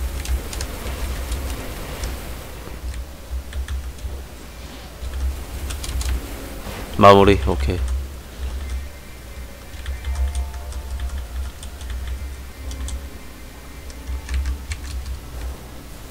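A young man talks quietly into a microphone.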